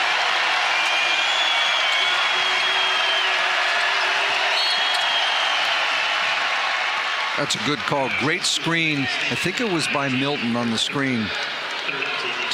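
A crowd roars in a large echoing arena.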